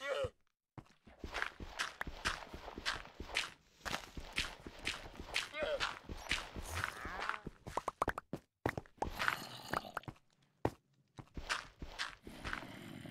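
Dirt crunches quickly and repeatedly as it is dug away.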